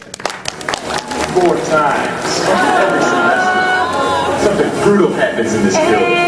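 A young woman sings loudly.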